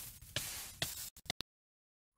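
Fire crackles and hisses as a player burns in lava.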